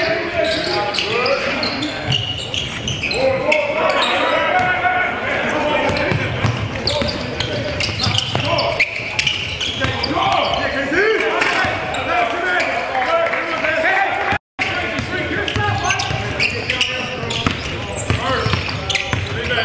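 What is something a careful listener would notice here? Sneakers squeak sharply on a floor.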